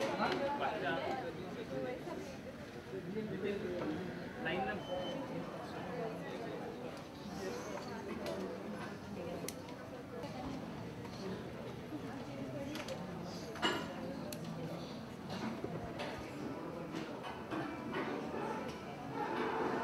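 A crowd of people murmurs and chatters indoors.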